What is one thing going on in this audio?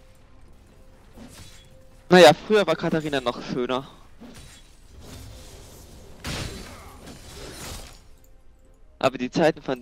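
Video game spell effects and combat sounds crackle and whoosh.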